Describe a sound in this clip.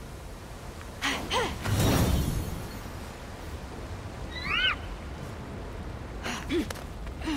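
Wind rushes past in a soft whoosh during a glide.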